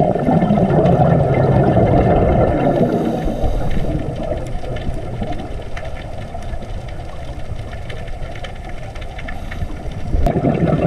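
Water rumbles in a low, muffled underwater wash.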